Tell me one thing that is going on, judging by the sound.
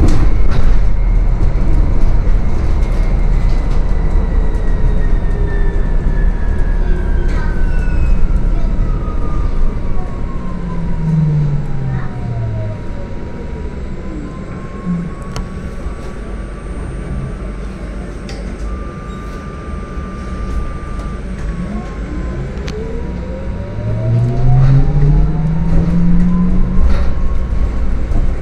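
Tyres rumble on the road inside a moving city bus.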